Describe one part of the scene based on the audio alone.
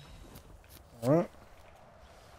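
A quick rising game sound effect plays as items are crafted.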